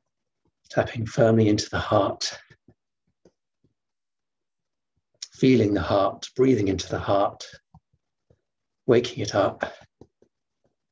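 A man speaks calmly and slowly over an online call, pausing between phrases.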